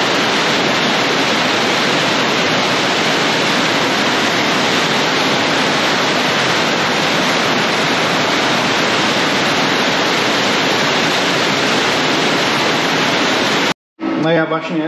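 Heavy rain pours down steadily, drumming on a metal roof and splashing on wet ground.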